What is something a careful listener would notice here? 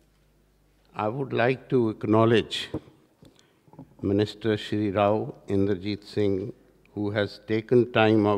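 An elderly man speaks calmly into a microphone over loudspeakers.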